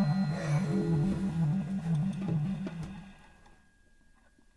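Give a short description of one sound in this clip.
A clarinet plays a lively jazz tune.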